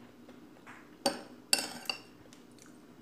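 Metal utensils clink and scrape.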